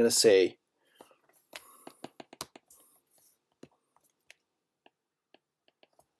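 A stylus taps and scratches softly on a glass tablet.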